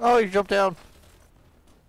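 A man shouts a short phrase loudly into a close microphone.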